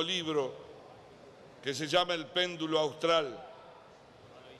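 A middle-aged man speaks calmly and formally into a microphone.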